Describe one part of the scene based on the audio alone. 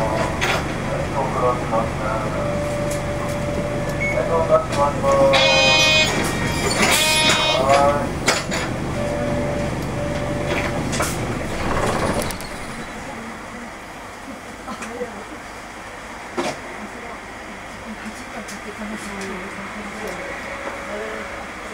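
Cars drive past one after another on a nearby street.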